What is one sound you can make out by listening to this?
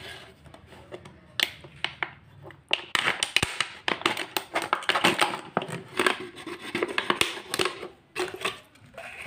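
A blade scrapes and crackles through a thin plastic bottle.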